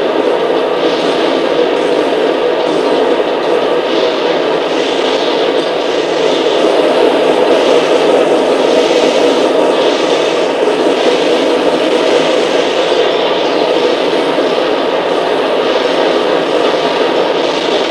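Explosions boom and crackle loudly.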